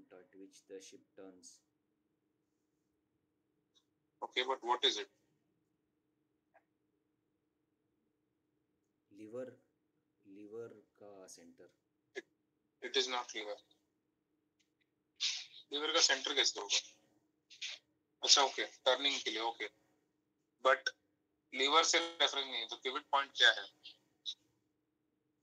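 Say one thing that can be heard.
A man speaks in bursts over an online call.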